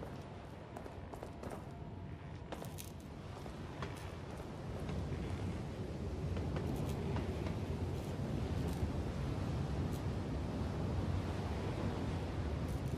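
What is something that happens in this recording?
Footsteps tread on stone and wooden boards.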